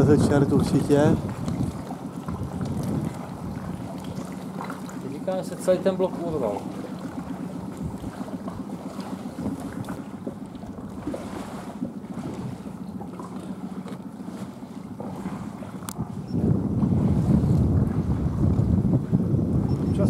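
Water laps gently against rock.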